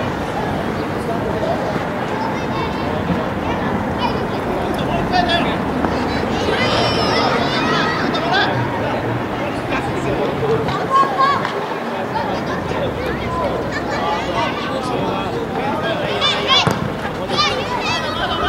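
Children shout and call out outdoors.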